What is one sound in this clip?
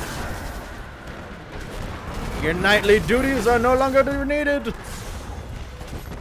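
Energy weapons blast and crackle in a fight.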